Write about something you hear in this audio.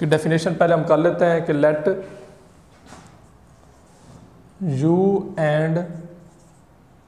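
A man speaks clearly and steadily, close by.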